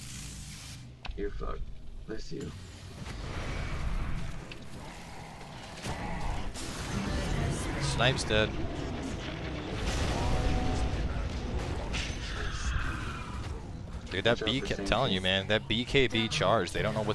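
Explosions boom in a game battle.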